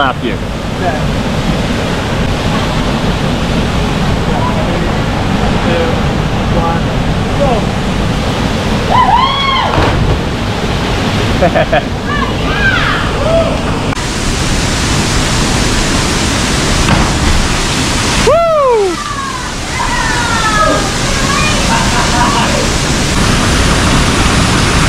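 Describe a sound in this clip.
Water rushes and gurgles over rocks nearby.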